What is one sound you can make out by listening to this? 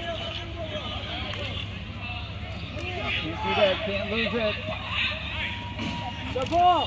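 Young men shout and call out to each other outdoors at a distance.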